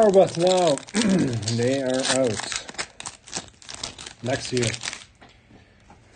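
A foil pack crinkles and tears as it is opened.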